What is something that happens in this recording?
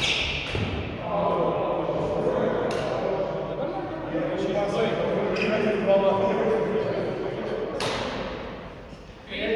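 Several men and women talk and call out across the hall.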